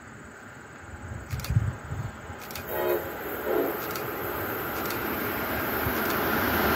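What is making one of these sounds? A train approaches along the tracks with a rising rumble.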